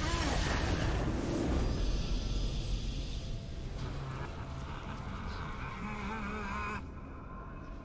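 A triumphant game fanfare plays and fades away.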